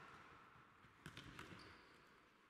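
A ball thuds off a player's foot in a large echoing hall.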